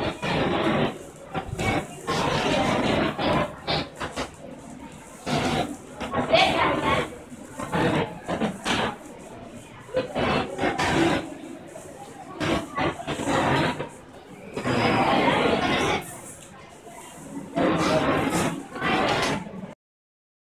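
A crowd of children chatters in a large echoing hall.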